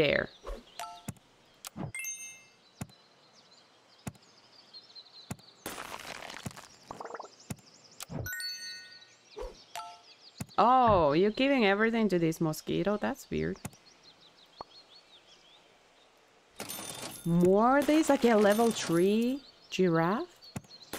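Short electronic game sounds click and chime.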